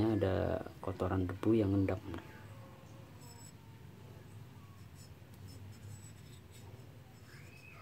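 A brush scrubs a small metal part.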